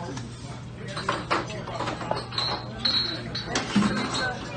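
Dishes and utensils clink and clatter nearby.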